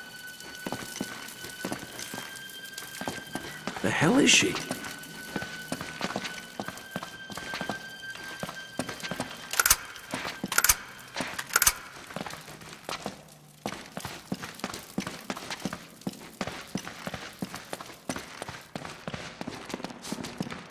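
Footsteps walk and run on a stone floor in an echoing space.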